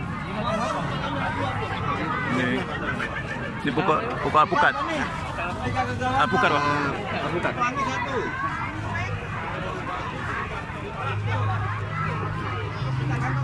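Several men and women talk at once close by in a busy crowd.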